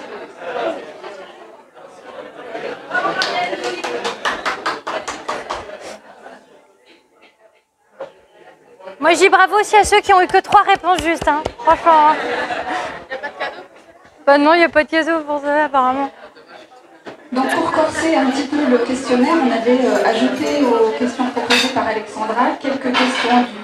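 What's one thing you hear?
A crowd of men and women chatter and call out loudly indoors.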